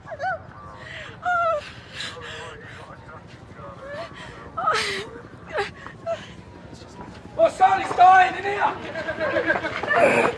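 A middle-aged woman cries out in shock.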